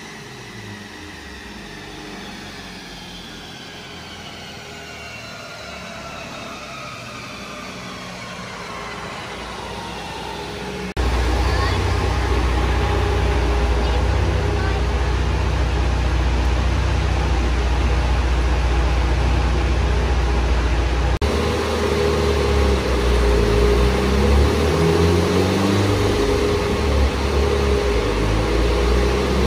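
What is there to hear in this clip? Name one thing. A car engine runs loudly and revs.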